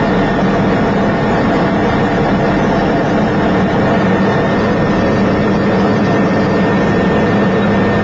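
A helicopter engine and rotor roar steadily from close by.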